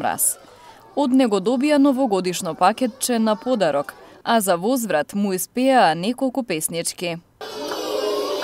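A young girl speaks into a microphone.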